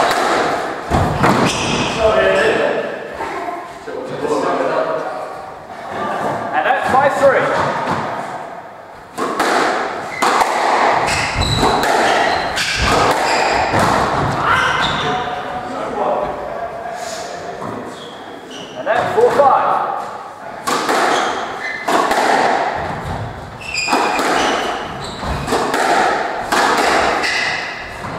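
A squash ball smacks against walls and rackets with sharp cracks in an echoing court.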